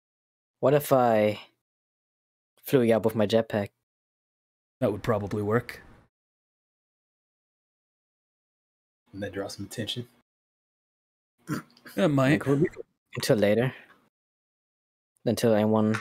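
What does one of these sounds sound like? A man talks with animation over an online call, in short bursts with pauses.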